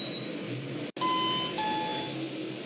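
An elevator bell chimes.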